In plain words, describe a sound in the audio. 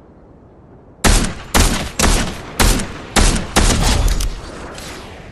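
A scoped rifle fires a rapid series of loud shots.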